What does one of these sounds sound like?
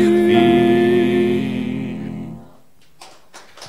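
Several men sing a sustained chord together through microphones, which then fades out.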